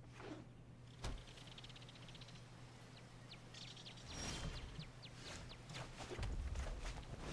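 Soft chimes and clicks of game sound effects ring out.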